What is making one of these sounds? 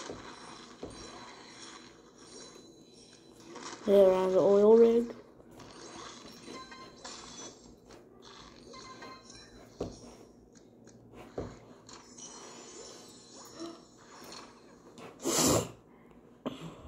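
A video game plays chiming and bubbling sound effects through a small tablet speaker.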